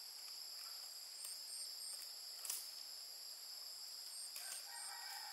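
Bamboo strips clack and rattle as they are handled.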